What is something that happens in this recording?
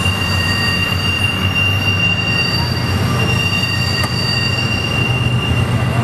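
A freight train rumbles past close by with a steady roar.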